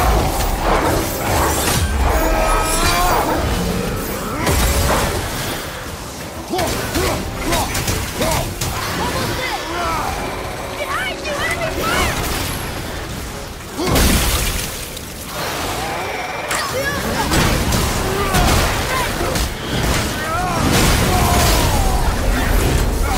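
Heavy blows and crashes ring out in a fight.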